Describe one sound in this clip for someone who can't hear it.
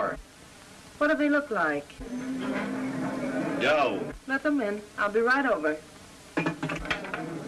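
A middle-aged man talks into a telephone.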